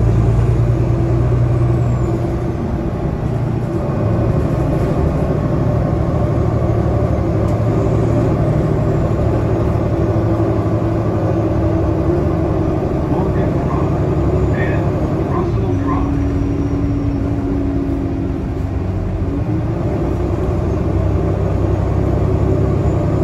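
Tyres roll on the road.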